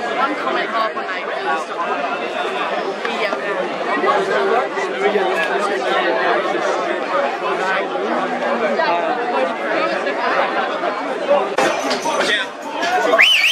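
A crowd of young people chatters loudly all around.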